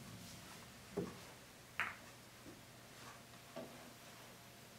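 A billiard ball thuds against a cushion.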